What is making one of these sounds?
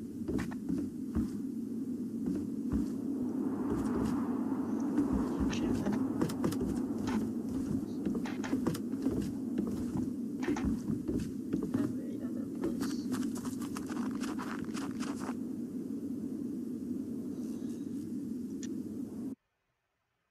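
Footsteps thud steadily.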